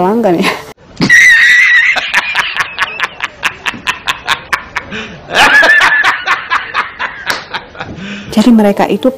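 A man laughs loudly and heartily.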